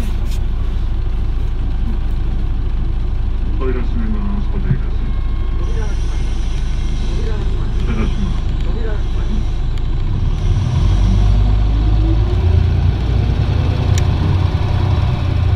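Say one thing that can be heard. A bus engine idles with a steady low rumble that grows louder toward the end.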